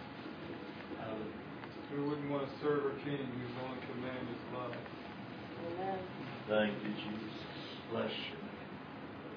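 A man talks calmly, heard over a phone line.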